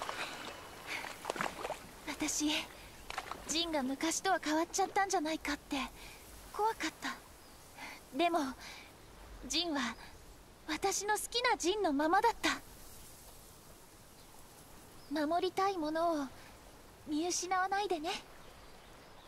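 A young woman speaks gently and warmly, close by.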